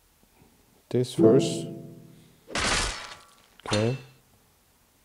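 Game gems shatter with a bright magical burst.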